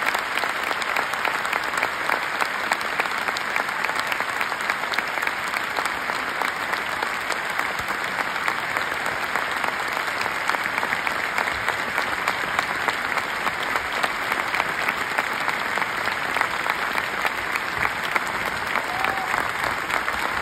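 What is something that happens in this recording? A large crowd applauds and cheers loudly in a big echoing hall.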